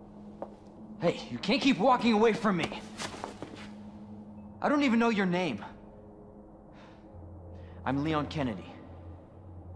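A young man speaks, close by, sometimes raising his voice.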